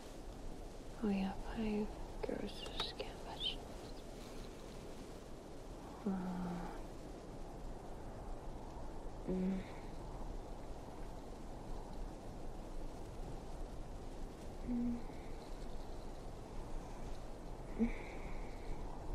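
A young woman breathes shakily and whimpers softly, close by.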